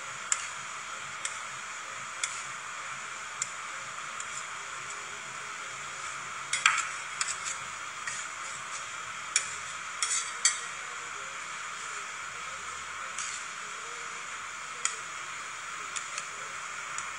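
Metal spatulas scrape and tap on a metal plate.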